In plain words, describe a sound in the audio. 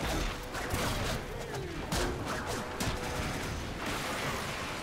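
Blades whoosh and clang in quick strikes.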